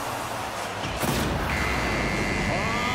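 A goal explosion bursts loudly.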